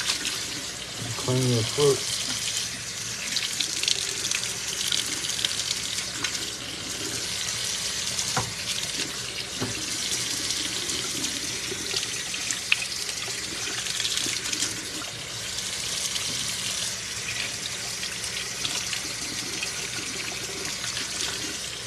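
Water runs from a tap and splashes steadily.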